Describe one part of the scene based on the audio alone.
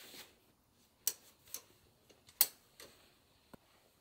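Metal hooks clink against a wire rack.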